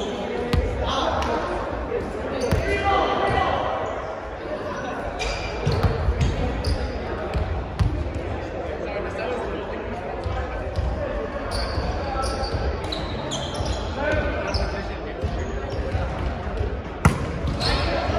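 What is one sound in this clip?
A volleyball thumps off forearms and hands now and then, echoing in a large hall.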